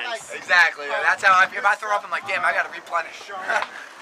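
A young man laughs and talks close by.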